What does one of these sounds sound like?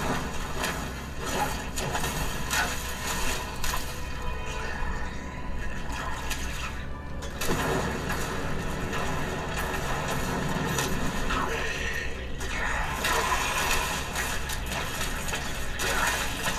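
Weapons clash and slash in a fight.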